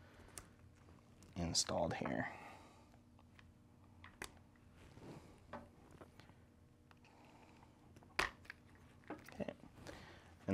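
A small wrench clicks and taps against metal parts.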